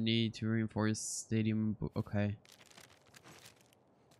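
Paper rustles as a map is folded away.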